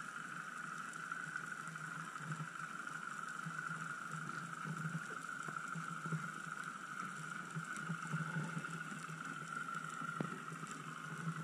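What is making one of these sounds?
A steady, muffled underwater hiss fills the background.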